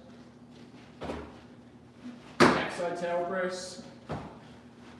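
A balance board thumps and rolls on a hard floor.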